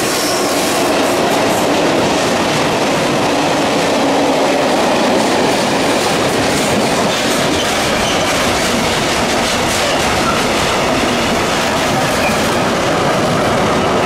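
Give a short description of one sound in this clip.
Freight wagon wheels clatter over the rail joints.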